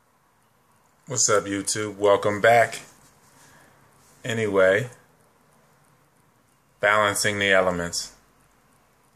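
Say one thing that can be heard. A young man speaks calmly and close by, in short phrases.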